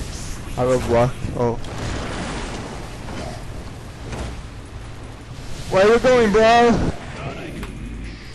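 Fiery spell blasts roar and crackle.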